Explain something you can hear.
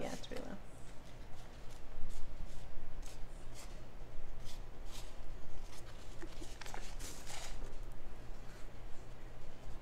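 Cardboard pots rustle and tap as they are handled.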